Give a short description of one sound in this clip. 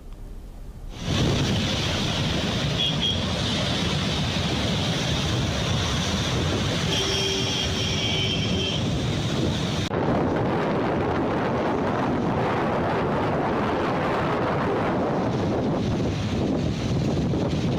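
Water roars steadily as it pours from a dam's open gates.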